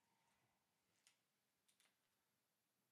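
Headphones rustle and knock as a man puts them on.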